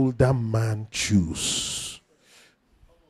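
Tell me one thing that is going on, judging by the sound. A man preaches loudly and with animation through a microphone.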